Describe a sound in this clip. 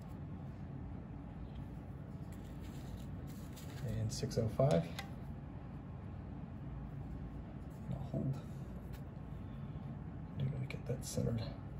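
A small metal block clicks softly onto a metal stand.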